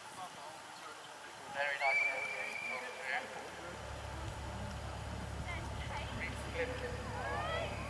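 A horse canters on grass with soft, dull hoofbeats.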